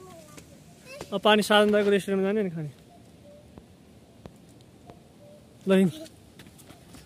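A young boy calls out close by.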